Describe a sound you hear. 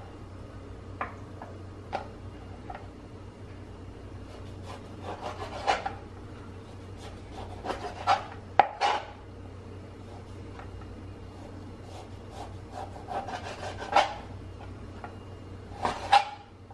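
A knife chops through chicken and taps on a plastic cutting board.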